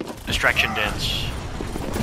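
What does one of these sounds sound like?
A weapon fires with a sharp energy blast.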